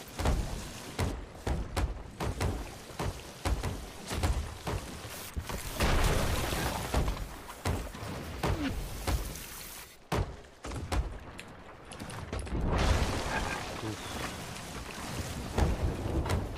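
A hammer knocks repeatedly on wooden planks.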